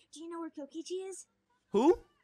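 A teenager speaks in a high, cheerful voice.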